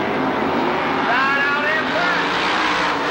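A race car engine whines past at high speed.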